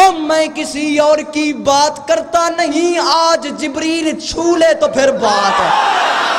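A young man chants loudly and with passion through a microphone, in a large echoing hall.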